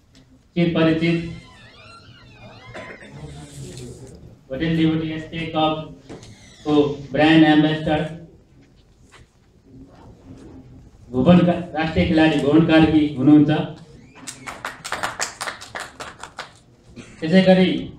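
A man speaks calmly into a microphone through a loudspeaker in an echoing hall.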